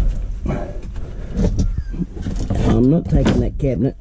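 Wooden boards clatter as they are shifted.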